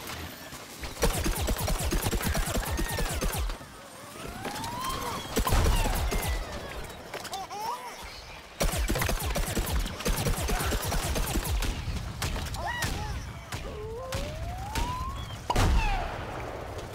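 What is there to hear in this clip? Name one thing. Explosions boom in a game.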